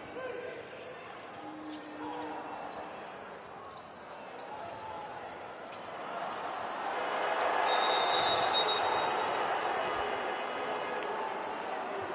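A large crowd cheers and roars in an echoing arena, growing louder.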